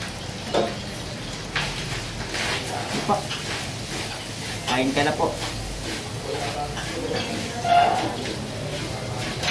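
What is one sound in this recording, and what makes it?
A young man chews and slurps food.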